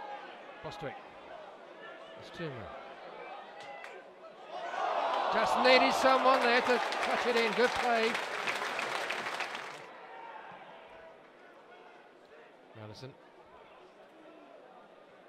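A stadium crowd murmurs and chants in the background.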